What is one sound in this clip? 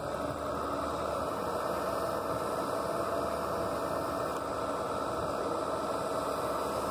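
A small excavator's diesel engine runs steadily close by.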